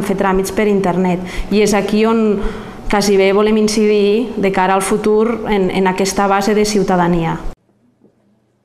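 A woman speaks calmly and with feeling, close to a microphone.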